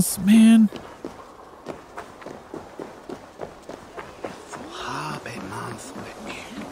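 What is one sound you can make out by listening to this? Footsteps tread steadily on dirt and wooden boards.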